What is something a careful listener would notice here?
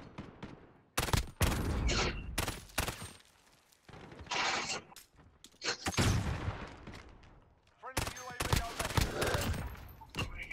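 A rifle fires loud, sharp bursts of gunshots.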